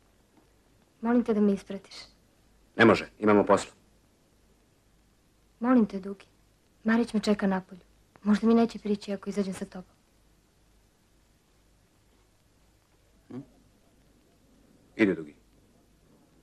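A young man talks in short, quiet bursts nearby.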